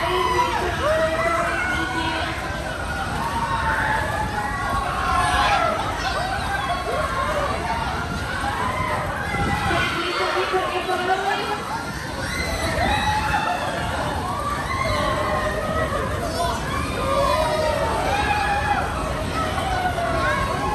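A crowd of young riders screams and shrieks with excitement nearby.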